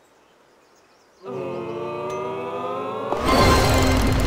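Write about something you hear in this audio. A golf ball rolls across a green and drops into the cup.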